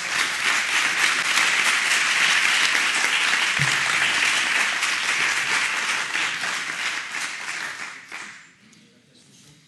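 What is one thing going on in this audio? An audience applauds in a large hall, then the clapping dies away.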